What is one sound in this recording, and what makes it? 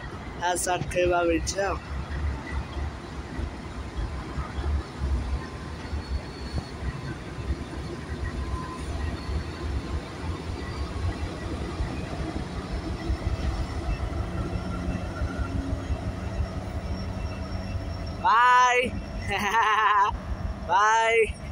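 A train horn blasts loudly in short bursts.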